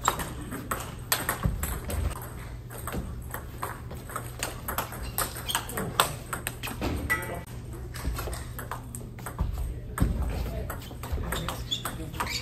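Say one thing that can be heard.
Sneakers squeak and shuffle on the floor.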